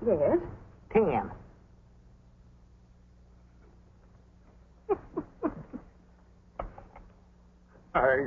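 An elderly man talks cheerfully close by.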